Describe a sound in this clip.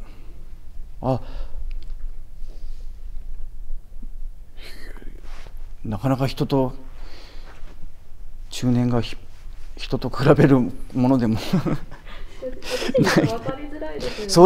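A man speaks calmly in short bursts, close to the microphone.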